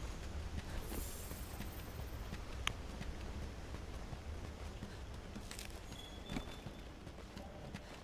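Footsteps tread on rocky ground.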